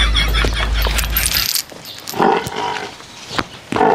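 Hooves squelch in wet mud as a buffalo walks.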